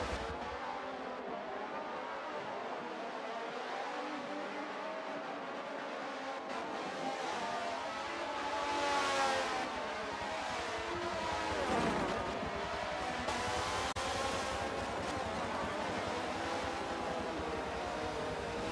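Race car engines whine loudly at high revs.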